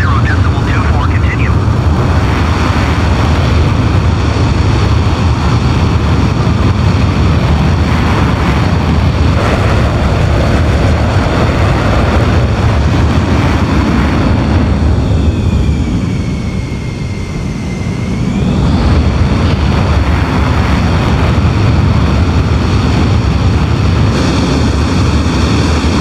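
A jet engine roars loudly and steadily.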